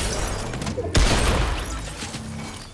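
Glass-like pieces shatter and tinkle.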